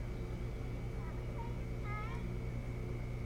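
An osprey gives a few short, high chirping calls close by.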